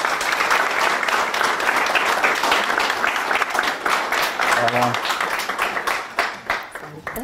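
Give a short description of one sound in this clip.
An audience applauds loudly in a room, then the clapping fades.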